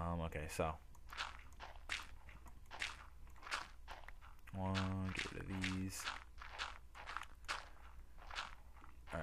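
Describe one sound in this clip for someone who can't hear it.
A pickaxe chips at stone in quick, repeated knocks.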